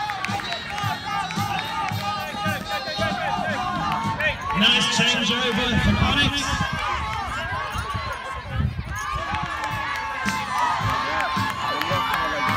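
Many children shout and chatter excitedly outdoors.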